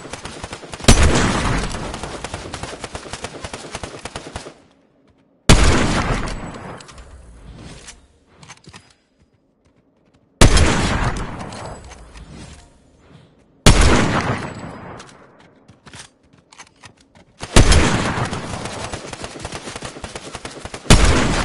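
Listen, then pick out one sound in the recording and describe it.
A rifle fires loud shots, each echoing away for a few seconds.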